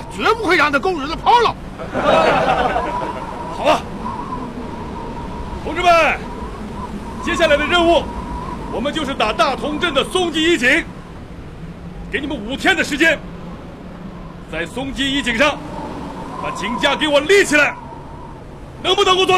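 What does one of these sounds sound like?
A middle-aged man speaks loudly and firmly to a group outdoors.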